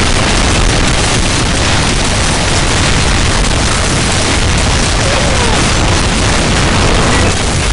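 Guns fire in rapid bursts in a video game.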